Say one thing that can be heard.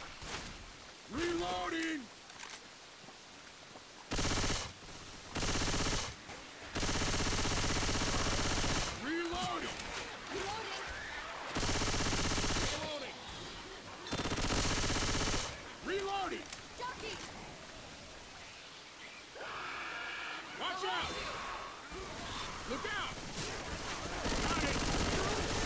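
Zombies snarl and groan.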